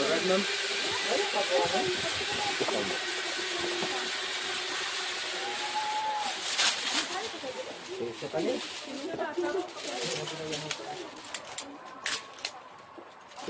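Metal harness clips click and rattle.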